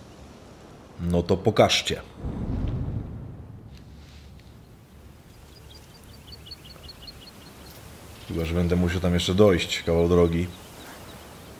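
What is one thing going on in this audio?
An older man speaks briefly and with animation into a close microphone.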